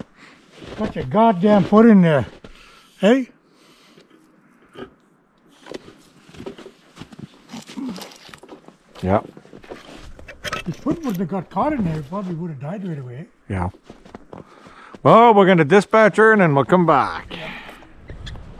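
A man talks close by, outdoors.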